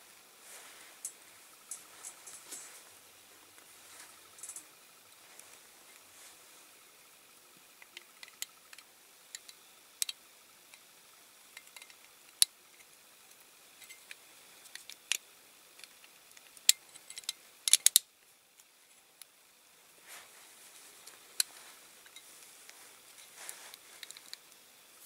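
Small plastic parts click and snap together close by.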